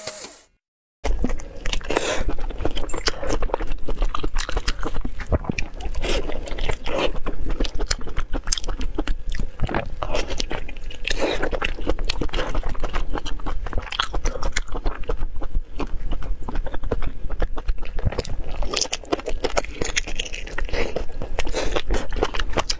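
Meat and bone crunch and tear close to a microphone.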